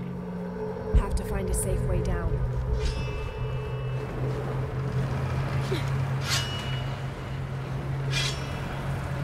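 Footsteps scrape and land on stone.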